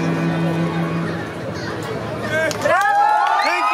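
A cello plays a slow melody on a bow.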